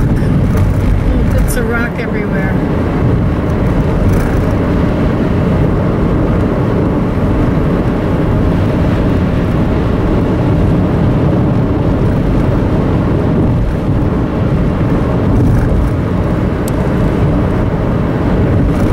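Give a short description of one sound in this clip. Road noise and a steady engine hum fill the inside of a moving car.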